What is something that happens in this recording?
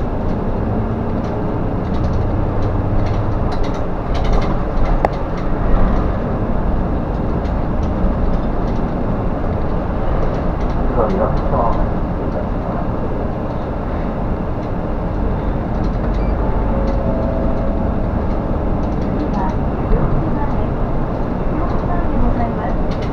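The bus body rattles and creaks over the road.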